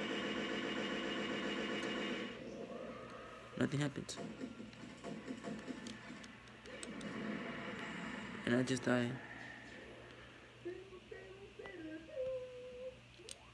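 Video game music and sound effects play through a television speaker.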